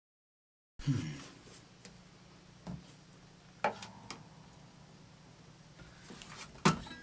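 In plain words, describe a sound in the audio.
Acoustic guitar strings are plucked and ring out.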